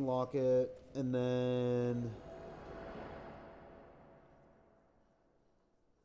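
A soft magical whoosh swells and fades away.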